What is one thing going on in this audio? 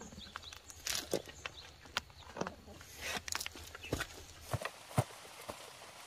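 Soil scrapes and crumbles as a hand digs a small hole.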